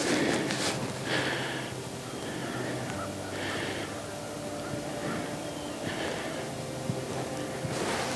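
A man blows a game call in short bursts.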